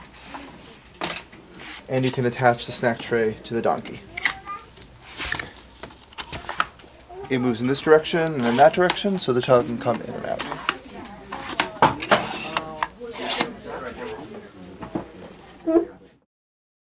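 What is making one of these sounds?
A plastic tray clicks and rattles as it snaps into place.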